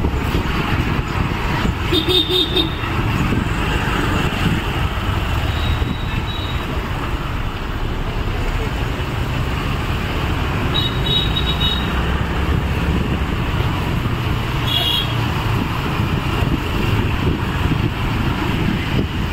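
An SUV engine runs as the SUV drives slowly.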